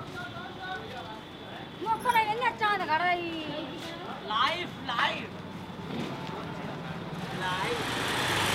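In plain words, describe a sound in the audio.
Footsteps scuff on a paved street.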